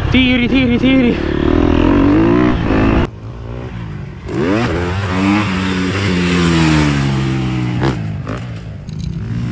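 A dirt bike engine revs hard, rising and falling in pitch as gears change.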